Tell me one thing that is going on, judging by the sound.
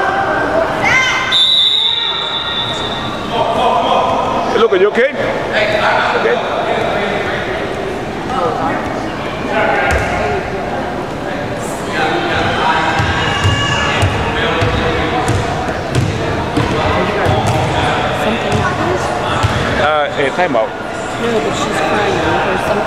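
Sneakers squeak on a gym floor, echoing through a large hall.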